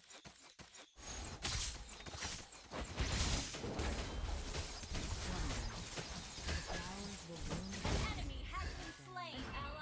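Game spell effects whoosh and clash in quick bursts.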